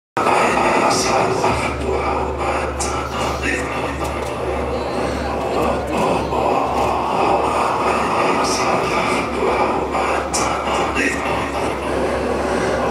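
Electronic music plays loudly with a deep bass drone.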